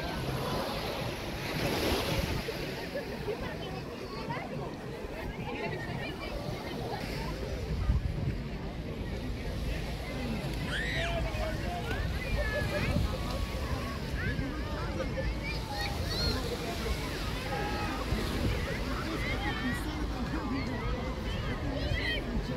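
Many people chatter and call out across a busy open-air beach.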